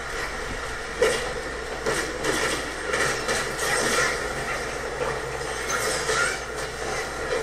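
A sword strikes with sharp metallic clashes.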